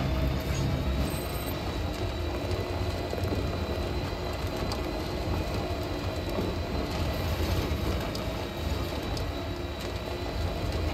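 A vehicle engine rumbles steadily as it drives.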